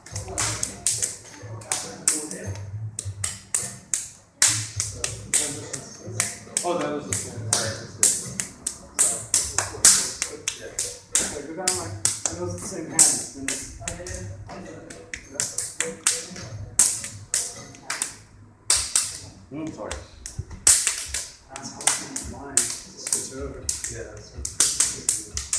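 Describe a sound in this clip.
Hands slap and smack against forearms in quick bursts.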